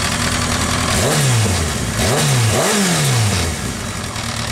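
An inline-four sport bike is revved in short blips.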